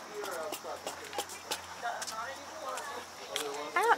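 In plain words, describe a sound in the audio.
A woman's footsteps scuff on concrete.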